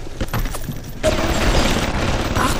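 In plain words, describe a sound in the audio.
Flames burst up and roar.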